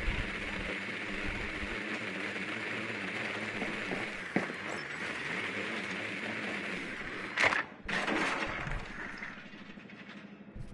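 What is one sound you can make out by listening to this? A small drone's wheels whir as it rolls across a hard floor.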